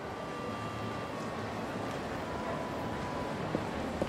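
Footsteps tap on pavement.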